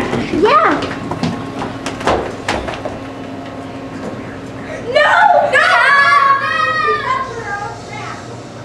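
Young girls squeal and shout excitedly close by.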